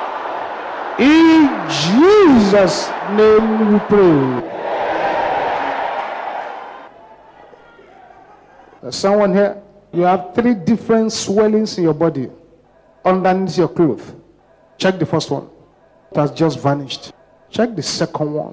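A man preaches forcefully through a microphone.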